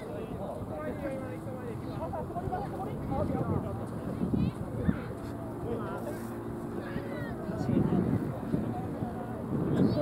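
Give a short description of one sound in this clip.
Children shout and call out across an open field.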